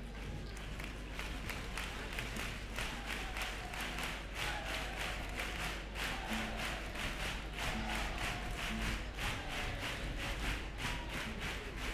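Many hands clap in a steady rhythm.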